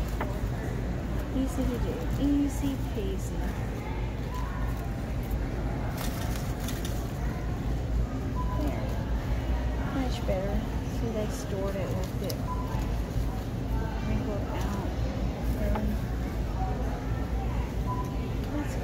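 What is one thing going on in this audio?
Stiff fabric and dry artificial leaves rustle as hands handle them.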